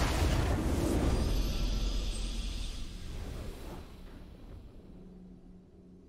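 A triumphant fanfare swells and then fades.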